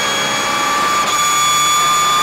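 A racing car's gearbox shifts up with a brief dip in the engine note.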